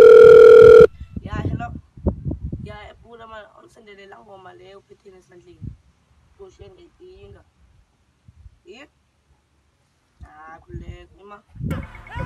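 A boy talks on a phone nearby, calmly.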